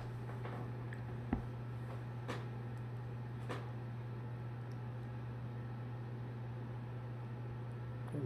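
A cockatoo nibbles a banana with soft wet clicks.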